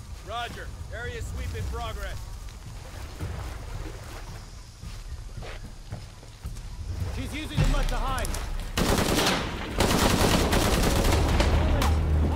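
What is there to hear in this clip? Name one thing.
Footsteps run over wet, muddy ground.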